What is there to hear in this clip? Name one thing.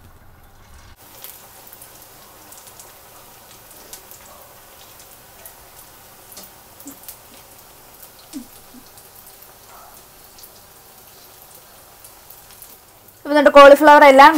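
Hot oil sizzles and crackles steadily as batter fries.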